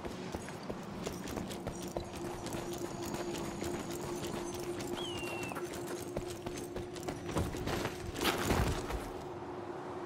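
Footsteps crunch quickly on sandy ground.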